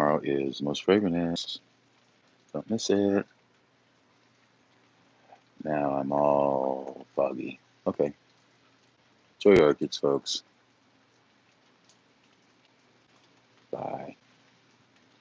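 A man talks calmly and close up, with pauses.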